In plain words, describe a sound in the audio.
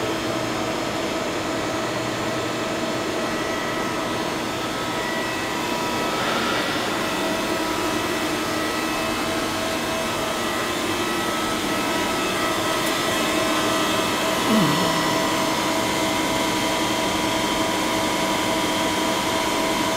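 Large machinery hums steadily in a big echoing hall.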